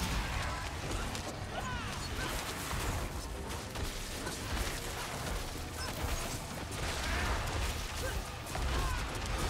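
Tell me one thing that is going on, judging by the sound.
Magic blasts and impacts crackle and boom in a fast fight.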